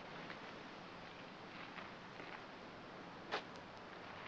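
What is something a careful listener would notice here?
Footsteps scuff on gravel.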